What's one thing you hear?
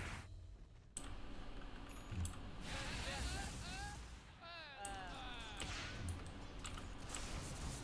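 Game fighting sound effects clash and whoosh.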